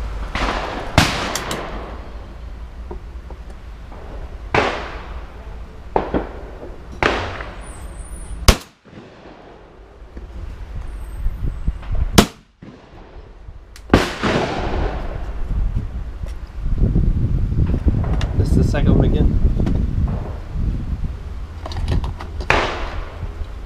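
Shotgun blasts boom loudly and sharply, one at a time.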